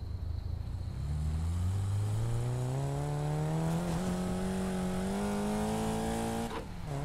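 A car engine revs up and climbs steadily in pitch as the car accelerates.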